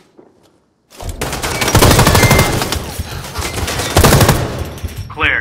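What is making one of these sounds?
A rifle fires rapid bursts, loud and close.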